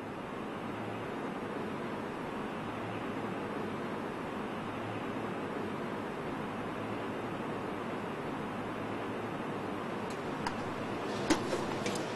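Broth bubbles and simmers steadily.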